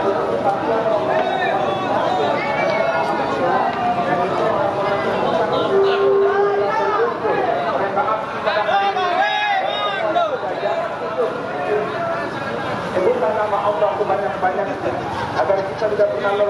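A large crowd of men chants and shouts outdoors, close by.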